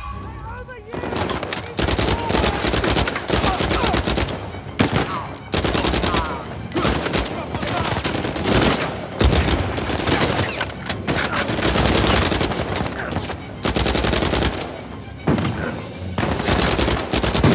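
Automatic rifles fire in rapid bursts.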